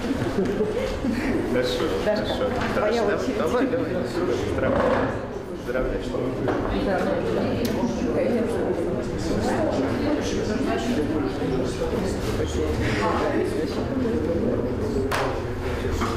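A young woman talks with a young man up close.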